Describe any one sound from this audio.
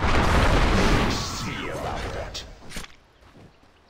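Magical blasts whoosh and crackle in a fierce fight.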